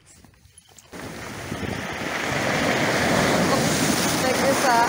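Waves wash loudly over pebbles.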